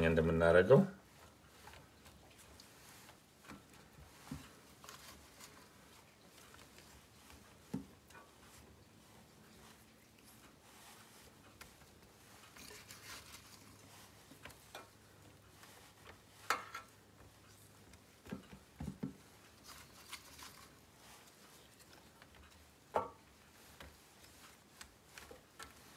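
Soft potato slices tap and slide against a metal pan.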